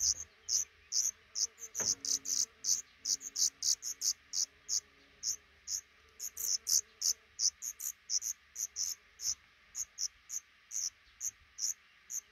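Baby birds cheep rapidly and repeatedly in a nest close by.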